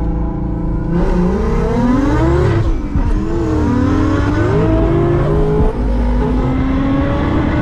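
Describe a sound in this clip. Tyres squeal loudly on pavement.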